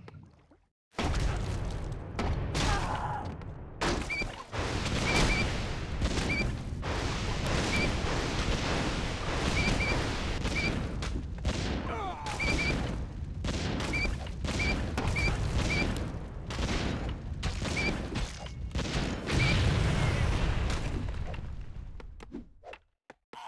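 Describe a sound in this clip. Weapons clash and clang rapidly in a crowded battle.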